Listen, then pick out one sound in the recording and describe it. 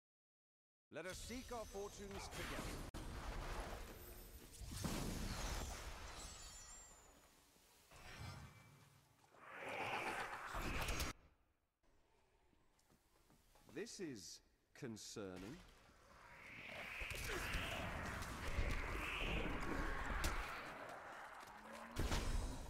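Spells crackle and whoosh in bursts.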